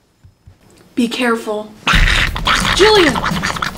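A girl speaks close by with animation.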